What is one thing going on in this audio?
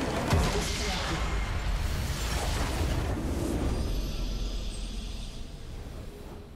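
Magic spell effects crackle and whoosh loudly.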